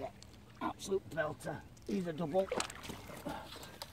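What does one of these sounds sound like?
A landing net swishes through the water.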